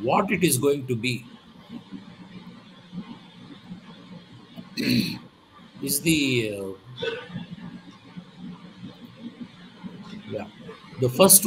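A man speaks calmly in bursts over an online call.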